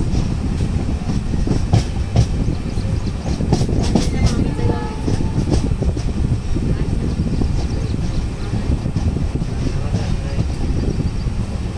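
Train wheels clatter over rail joints.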